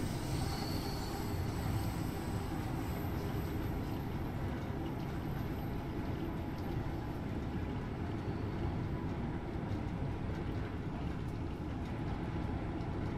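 A train rumbles steadily through a tunnel.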